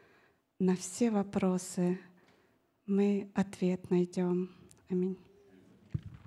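A middle-aged woman speaks calmly into a microphone in a reverberant hall.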